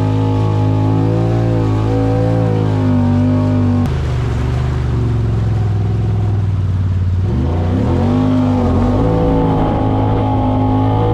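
Water splashes and sprays against the hull.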